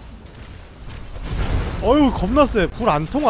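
A fireball bursts with a deep, booming explosion.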